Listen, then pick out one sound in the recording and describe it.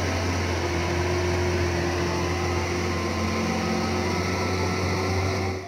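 A heavy truck's diesel engine rumbles steadily as it drives past.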